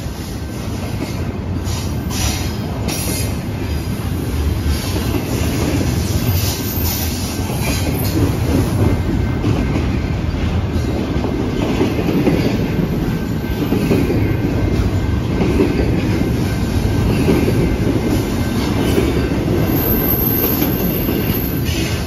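A long freight train rumbles past close by at speed.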